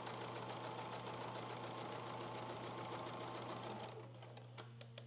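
A sewing machine runs with a fast, steady whir, then stops.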